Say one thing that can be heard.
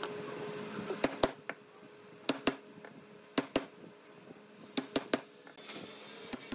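A mallet knocks sharply on a chisel, cutting into wood, in pairs of blows.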